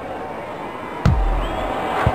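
A soccer ball is kicked with a thud.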